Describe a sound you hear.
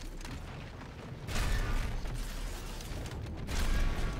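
A heavy gun fires in bursts of loud blasts.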